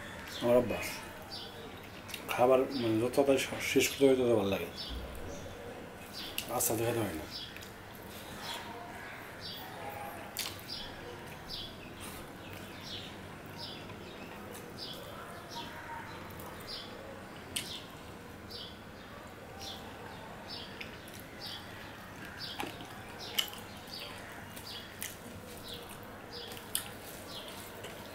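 Fingers squish and mix wet rice on a metal plate.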